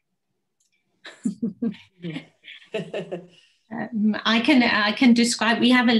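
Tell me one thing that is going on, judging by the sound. A woman speaks and laughs with animation through an online call.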